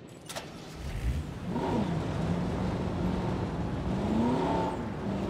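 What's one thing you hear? A jeep engine rumbles as the vehicle drives off and speeds up.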